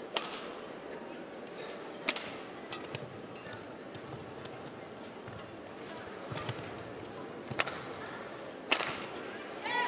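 A racket smacks a shuttlecock back and forth.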